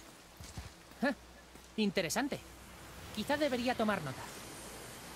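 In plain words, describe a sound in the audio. A boy speaks calmly.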